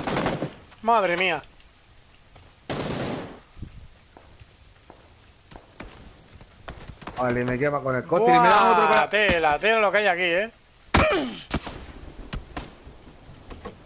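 Footsteps crunch over dry grass and dirt at a quick pace.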